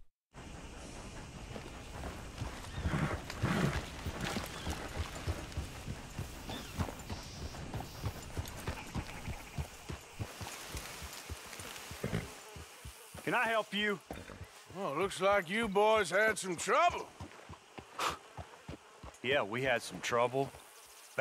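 A horse's hooves thud steadily on dirt.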